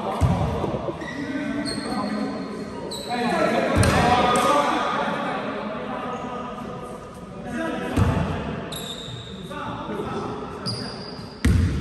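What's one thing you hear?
A basketball thuds on a hard floor.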